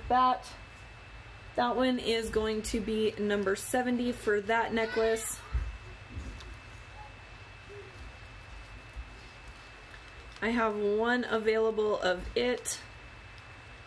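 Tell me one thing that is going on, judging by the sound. A young woman talks brightly and close by, in short bursts.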